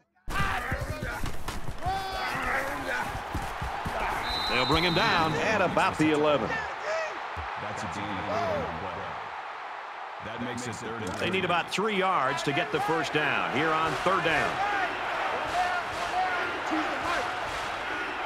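A large crowd cheers and roars steadily in a stadium.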